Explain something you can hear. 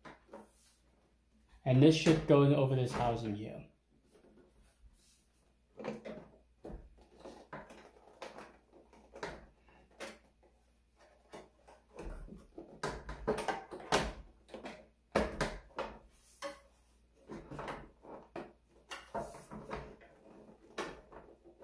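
Hands handle plastic parts with light knocks and rattles.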